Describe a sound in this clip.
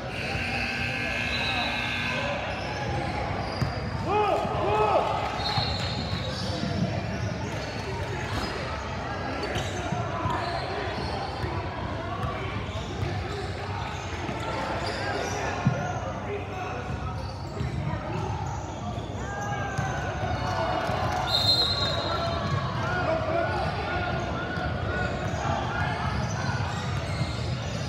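Distant voices chatter in a large echoing gym.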